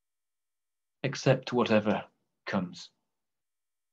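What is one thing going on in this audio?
A man speaks briefly and calmly through an online call.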